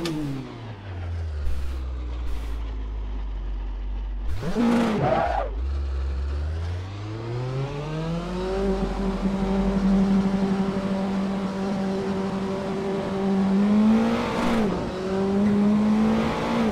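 A racing car engine idles low, then revs up and holds a steady high drone.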